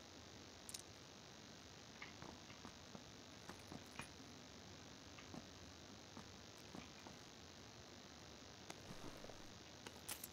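Footsteps run across grass and stone.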